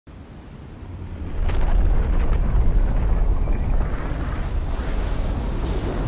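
A deep rumble swells and roars as a blaze burns.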